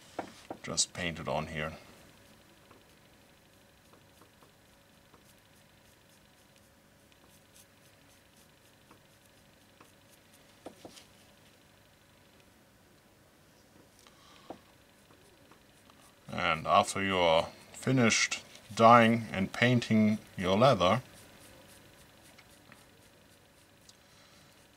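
A lace rubs as it is pulled through leather.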